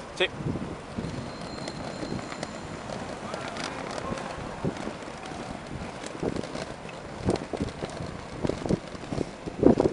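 Roller skate wheels roll and clatter on pavement.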